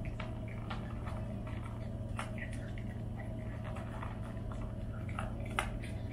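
A dog crunches dry food from a bowl.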